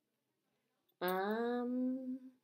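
A young woman draws out a long, falling vocal sound.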